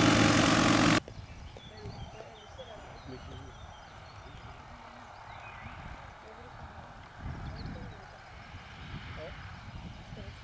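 A small propeller plane's engine drones as it flies in low and approaches.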